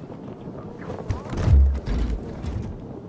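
A case lid thuds open.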